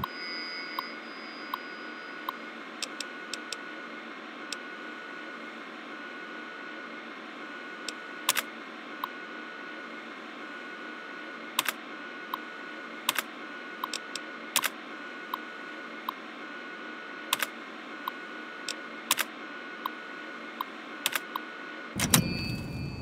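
A computer terminal hums steadily.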